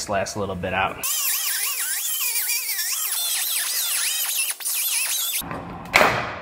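A pneumatic grinder whirs and grinds against metal with a high, steady whine.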